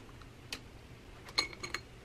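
Pencils clink against each other in a glass cup.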